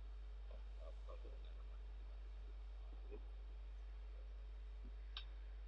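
A man speaks quietly into a microphone in short, scattered bursts with long pauses.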